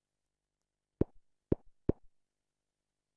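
Three quick pops from a game sound in a row.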